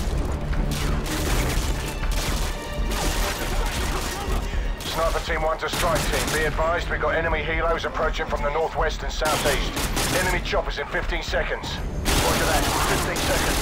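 Rifle fire bursts loudly and repeatedly at close range.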